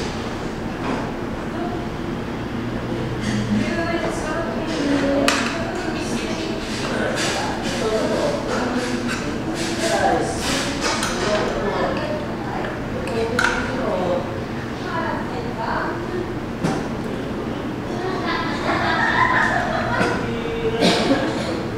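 Utensils clink lightly against a bowl.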